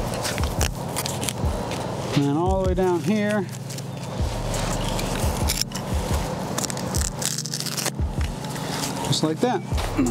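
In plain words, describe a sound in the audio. A roll of plastic foam rustles and crinkles as it is handled.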